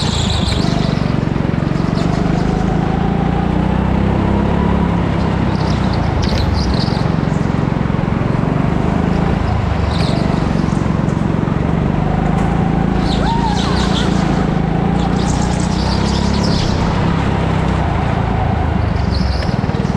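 A go-kart engine drones loudly close by, rising and falling as it speeds up and slows.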